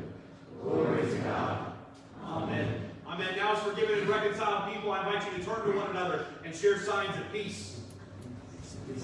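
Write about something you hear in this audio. A man speaks calmly to a gathering in an echoing hall.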